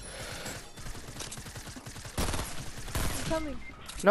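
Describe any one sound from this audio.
Gunfire crackles in quick bursts.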